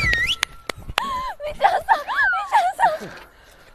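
A young woman laughs excitedly.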